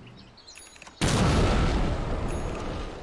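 A magical blast bursts loudly and crackles.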